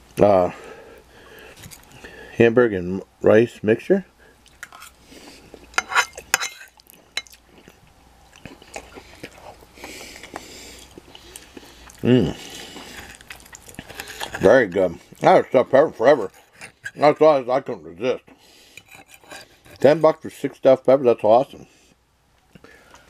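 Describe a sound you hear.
A fork scrapes and taps against a plate.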